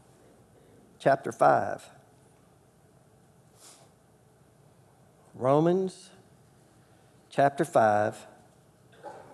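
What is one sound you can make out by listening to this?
A man speaks calmly into a microphone in a large room, in short bursts with pauses.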